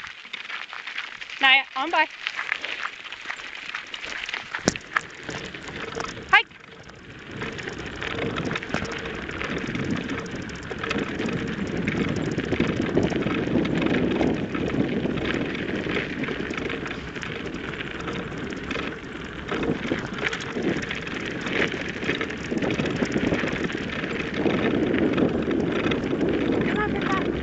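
Footsteps crunch steadily on a gravel road.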